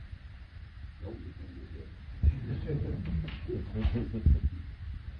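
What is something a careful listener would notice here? An elderly man speaks quietly nearby.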